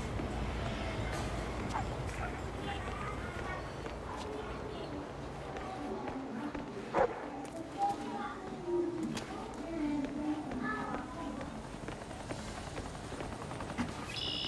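Footsteps walk over cobblestones.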